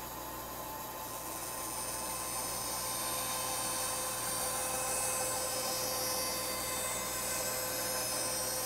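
A band saw blade cuts into wood with a rising, rasping hiss.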